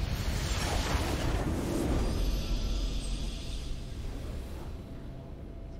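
A triumphant fanfare swells and rings out.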